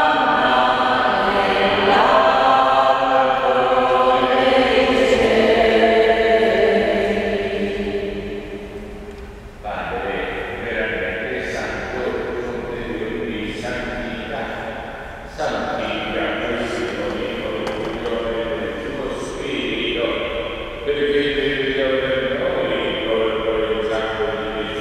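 A man chants in a sustained, singing voice through a microphone, echoing in a large hall.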